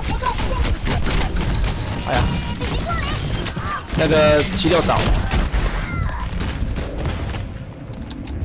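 Gunfire from a game rattles in quick bursts.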